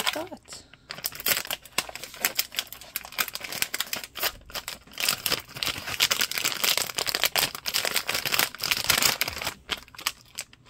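A foil packet crinkles and tears as it is opened.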